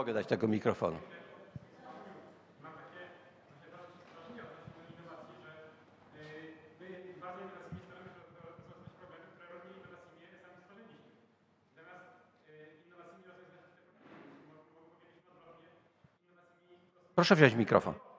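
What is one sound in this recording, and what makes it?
A young man speaks calmly from a distance, without a microphone.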